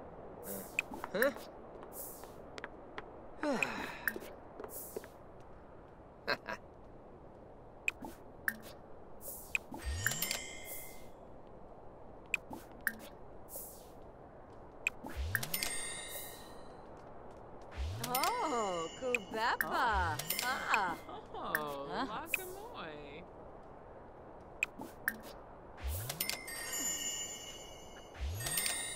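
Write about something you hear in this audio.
Short interface clicks sound repeatedly.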